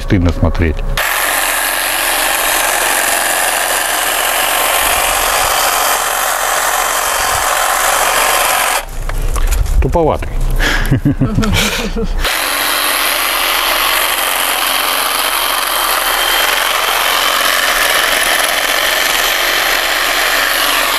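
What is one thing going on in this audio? An electric hedge trimmer buzzes steadily, cutting through branches.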